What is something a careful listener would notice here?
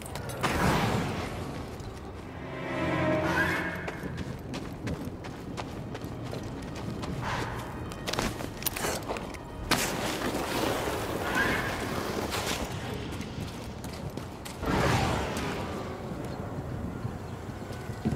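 Footsteps crunch on gravel and rock.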